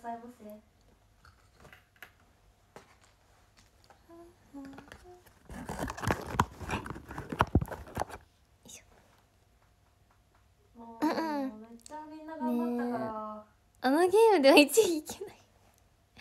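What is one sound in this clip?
A young woman speaks softly close to a microphone.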